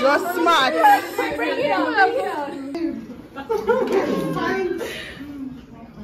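A young woman laughs and talks excitedly close by.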